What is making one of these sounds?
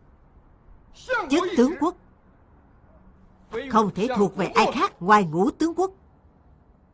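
A middle-aged man speaks forcefully and close by.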